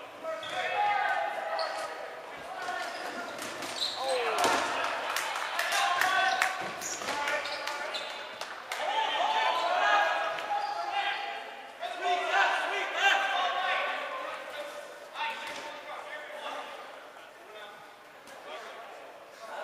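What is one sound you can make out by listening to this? Young players shout and call out in a large echoing gym.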